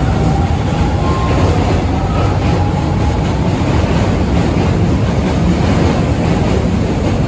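A train rumbles and rattles past at close range.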